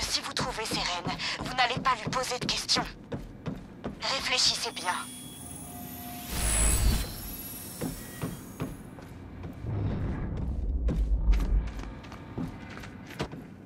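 Footsteps run quickly across a wooden floor.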